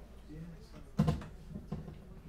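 An acoustic guitar knocks as it is lifted.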